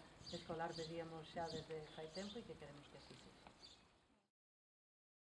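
An elderly woman speaks calmly into a microphone close by.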